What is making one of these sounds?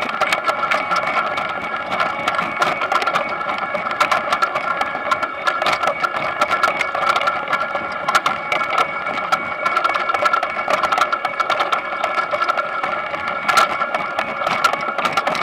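Potatoes knock and tumble against each other.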